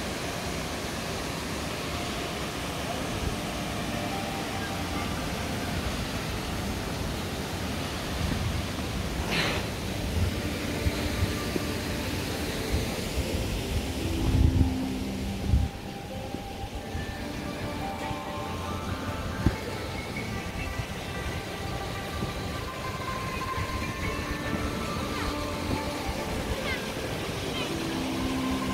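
A waterfall rushes and splashes steadily nearby.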